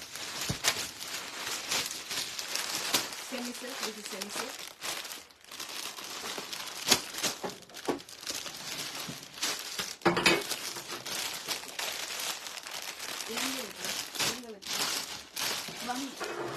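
Fabric rustles as it is unfolded and folded.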